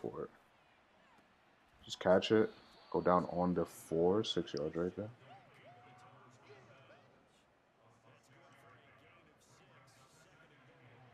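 A stadium crowd murmurs and cheers in the distance.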